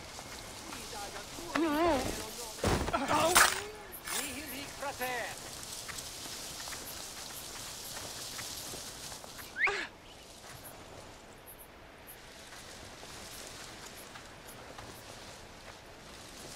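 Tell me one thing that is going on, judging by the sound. Footsteps rustle softly through tall plants.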